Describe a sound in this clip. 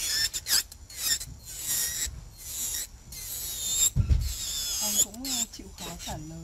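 A nail file scrapes against a fingernail in quick rasping strokes.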